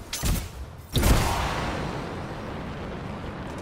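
A loud explosion booms and slowly rumbles away.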